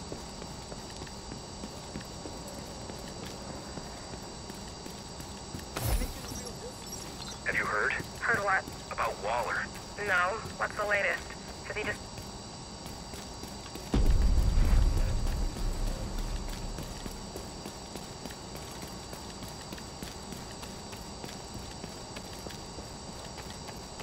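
Footsteps tread on hard floors and pavement.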